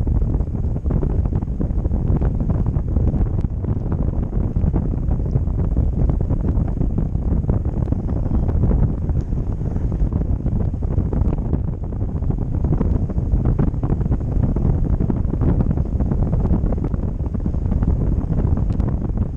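Strong wind rushes and buffets past a microphone outdoors.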